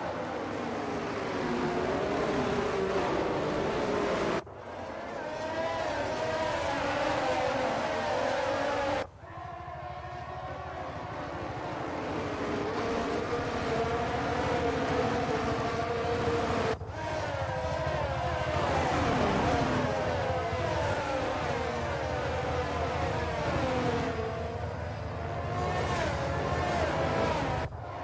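Formula One car engines scream at high revs.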